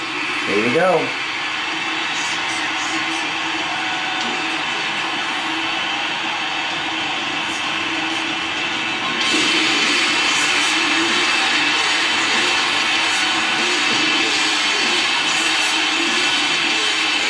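Loud entrance music plays through arena speakers.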